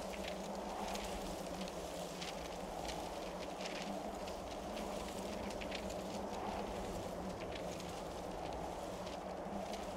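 Footsteps scrape on stone.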